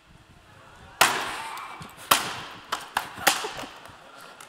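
A guitar is smashed hard against a stage floor with loud cracks.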